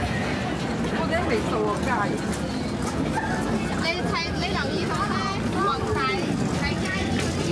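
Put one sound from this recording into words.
Young women talk with animation close by.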